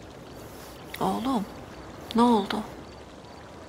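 A woman speaks softly and gently, close by.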